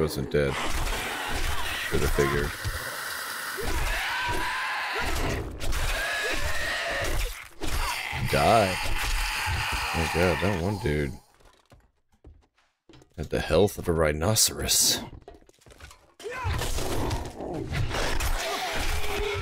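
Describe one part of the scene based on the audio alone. A zombie snarls and screeches up close.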